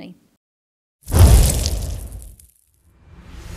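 A burst of flame roars and whooshes.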